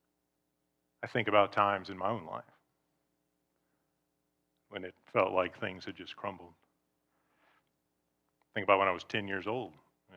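A middle-aged man speaks calmly through a microphone, in short bursts with pauses.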